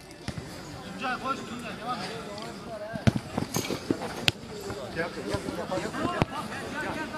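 Men shout to each other across a football pitch outdoors.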